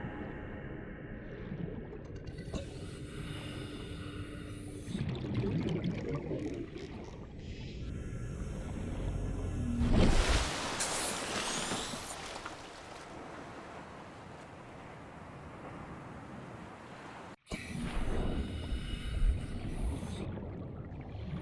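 Water gurgles and rumbles, muffled underwater.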